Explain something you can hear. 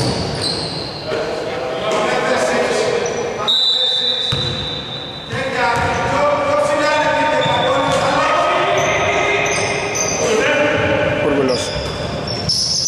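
Young men shout and call out across the hall.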